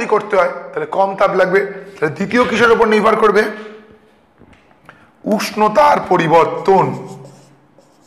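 A man speaks calmly and clearly into a microphone close by.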